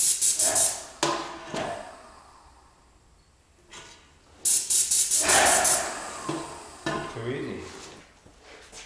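A plastic spray gun clicks and rattles as it is handled.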